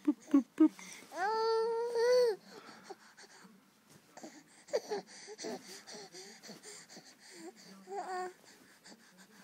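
A baby coos and babbles softly, close by.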